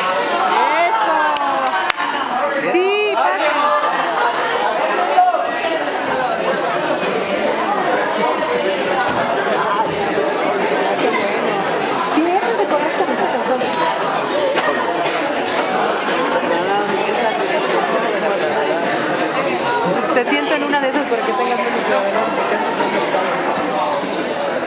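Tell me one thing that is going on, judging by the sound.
Many voices chatter and murmur in a large echoing hall.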